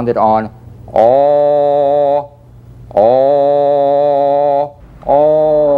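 A man sings long, steady held notes, close by.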